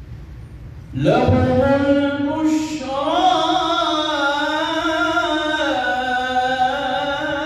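A man chants loudly in a melodic voice through a microphone, echoing in a large hall.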